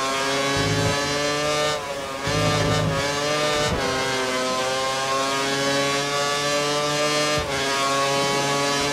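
A Formula One V8 engine screams at high revs, dropping briefly at each gear shift.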